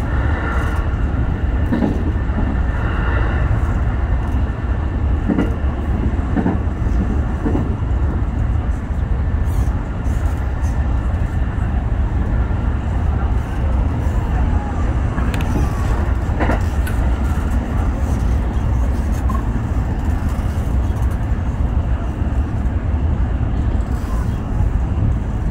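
A train rumbles steadily along the tracks, heard from inside the cab.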